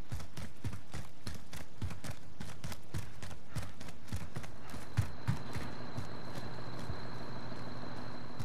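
Quick footsteps thud steadily on a hard floor.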